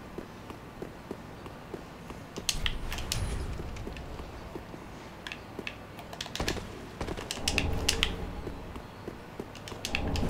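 Armoured footsteps clank on stone.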